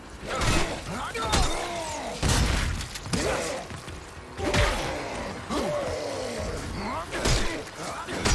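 A creature snarls and shrieks repeatedly.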